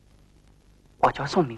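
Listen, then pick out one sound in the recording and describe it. An older man answers in a calm voice nearby.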